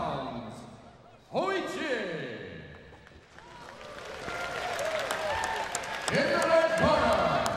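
A man announces loudly and drawn out through a loudspeaker in a large echoing hall.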